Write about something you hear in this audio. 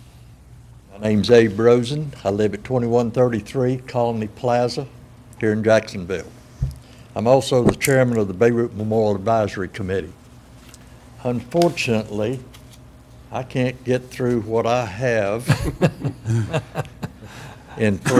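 An elderly man speaks steadily into a microphone, heard through a room with some echo.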